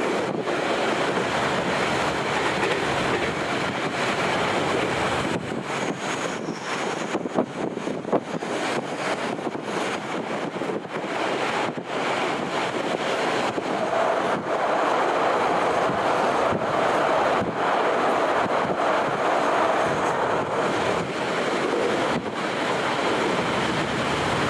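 Wind rushes past an open window.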